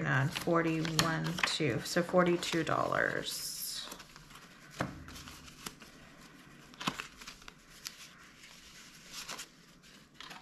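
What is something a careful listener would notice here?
Paper banknotes rustle and flick as they are counted by hand.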